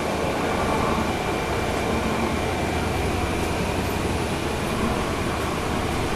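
Another bus passes close by outside.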